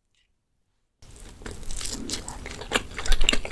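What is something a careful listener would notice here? A young woman chews soft food with wet, squishy sounds close to a microphone.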